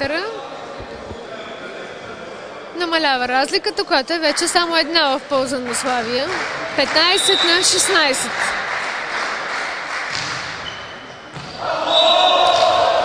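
A volleyball is hit with sharp slaps in a large echoing hall.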